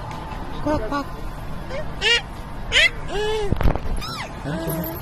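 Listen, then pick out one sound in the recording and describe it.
A toddler girl squeals and babbles close by.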